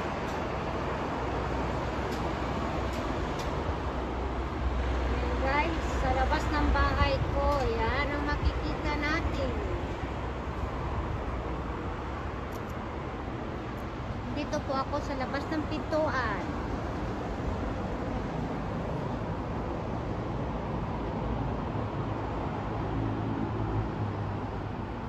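Traffic rumbles steadily on an elevated road below.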